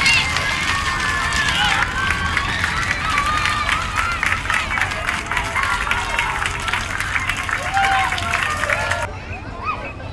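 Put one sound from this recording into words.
A large crowd of children sings and cheers loudly.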